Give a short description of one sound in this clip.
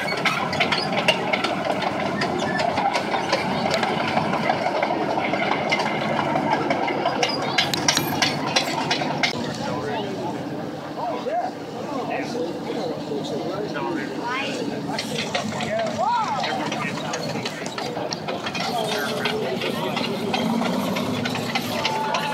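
A tank engine rumbles steadily as the tank drives past.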